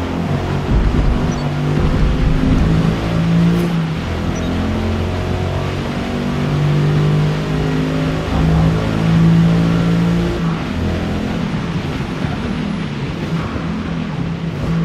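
Rain patters steadily on a car's windscreen.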